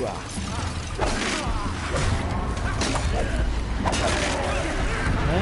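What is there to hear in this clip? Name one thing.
Fiery bursts and clashes of combat crash loudly.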